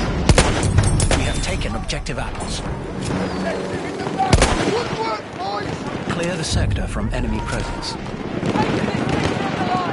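Gunshots crack sharply in a battle.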